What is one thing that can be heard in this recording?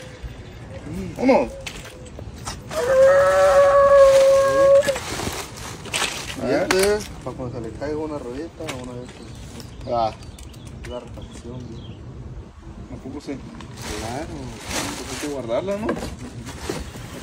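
A second man answers in a lively voice.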